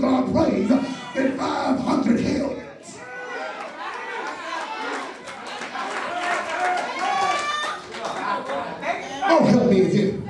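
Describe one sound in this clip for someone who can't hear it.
A man speaks forcefully into a microphone, heard through loudspeakers in an echoing room.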